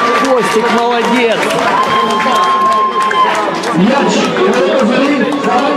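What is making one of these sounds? Young men shout and cheer in celebration.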